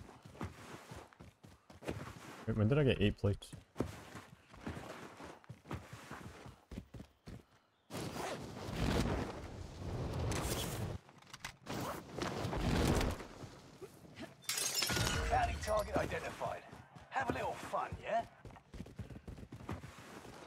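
Footsteps patter quickly over dry ground.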